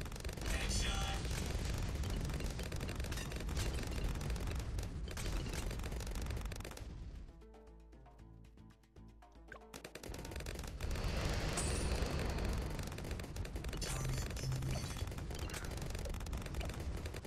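Cartoon balloons pop rapidly in quick bursts.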